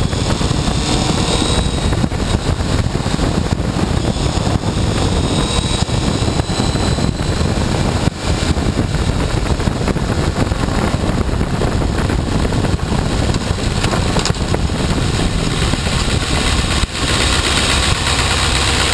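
A motorcycle engine runs loudly as the bike rides along.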